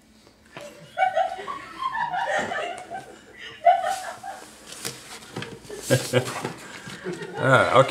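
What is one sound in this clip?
Several young men laugh and cheer loudly together.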